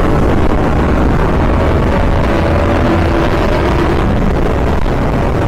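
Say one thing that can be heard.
A motorcycle engine roars steadily at high speed.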